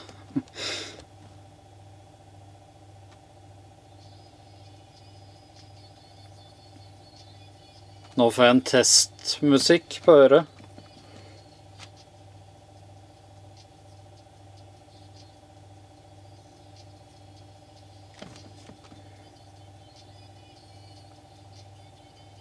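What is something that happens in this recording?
A finger taps lightly on a phone's touchscreen.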